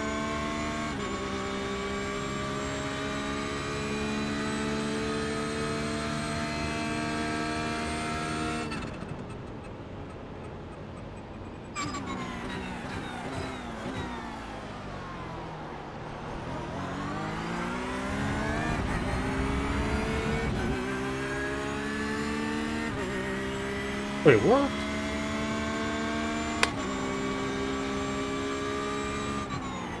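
A race car engine roars at high revs, dropping in pitch as it brakes and rising again as it speeds up through the gears.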